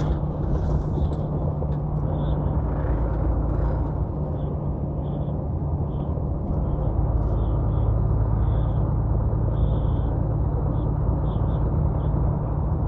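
A heavy vehicle's engine drones steadily from inside the cab.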